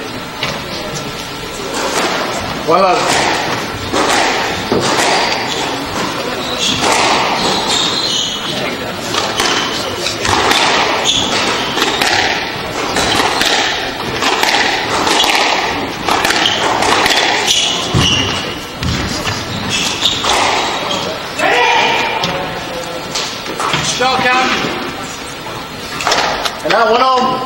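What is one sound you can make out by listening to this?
A squash ball smacks hard against the walls in a rally.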